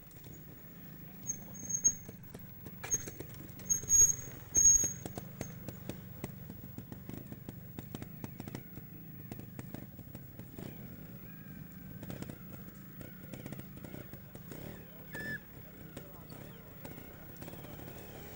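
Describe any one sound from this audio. A motorcycle engine putters and idles low nearby.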